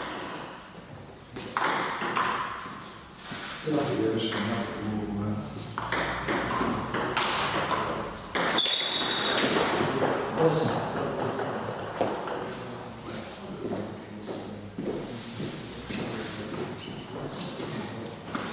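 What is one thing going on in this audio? Sneakers squeak and shuffle on a wooden floor.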